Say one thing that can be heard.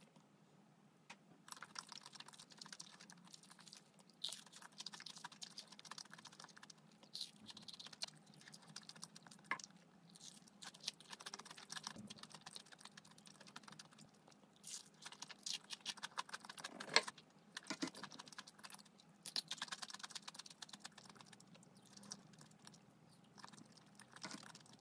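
Chopsticks click against a dish.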